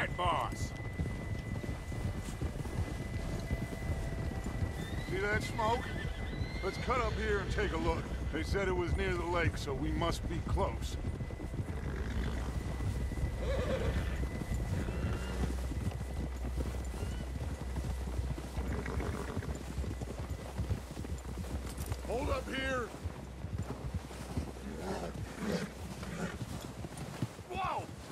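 Horses' hooves thud softly through deep snow.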